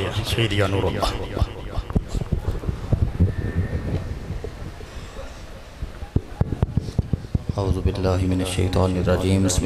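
A man chants into a microphone over a loudspeaker in a large echoing hall.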